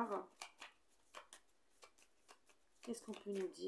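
Playing cards riffle and snap as they are shuffled.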